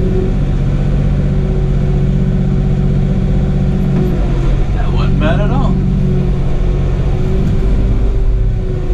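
A diesel tractor engine runs, heard from inside the cab.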